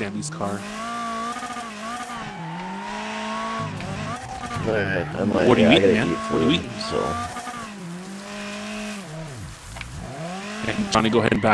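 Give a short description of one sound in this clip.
A car engine revs hard, rising and falling as the gears change.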